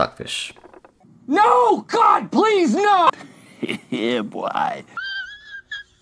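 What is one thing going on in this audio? A man speaks loudly with an open mouth.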